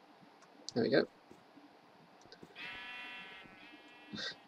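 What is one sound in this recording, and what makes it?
A sheep bleats.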